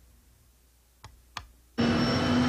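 Wardrobe doors click open.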